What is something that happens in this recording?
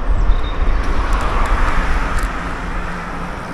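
A car approaches along the road.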